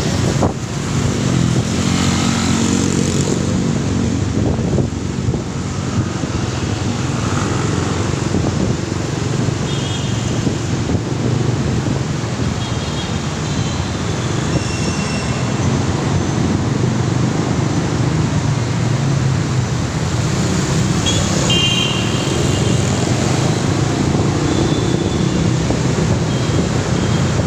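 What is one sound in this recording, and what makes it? Traffic rumbles loudly.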